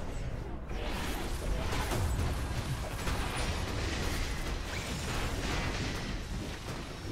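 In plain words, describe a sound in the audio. Game battle effects crash and clash with magical bursts.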